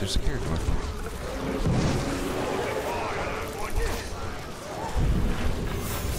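Game creatures snarl and roar.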